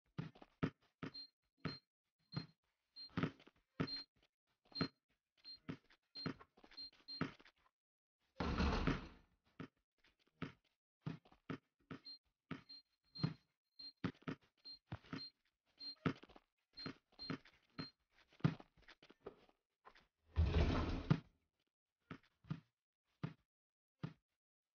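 A basketball bounces repeatedly on a hard court.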